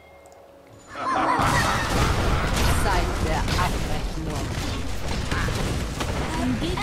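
Magic spells whoosh and crackle in a noisy fight.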